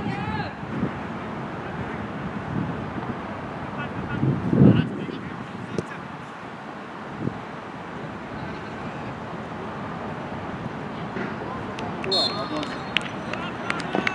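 Distant players shout across an open field outdoors.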